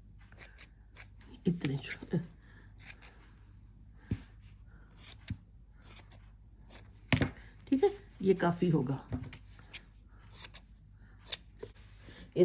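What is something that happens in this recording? Scissors snip through yarn with short, sharp clicks.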